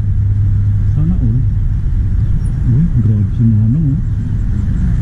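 An elderly woman talks calmly nearby.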